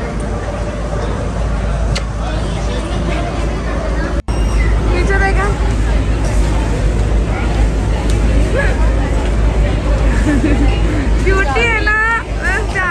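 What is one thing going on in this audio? A crowd of people chatters.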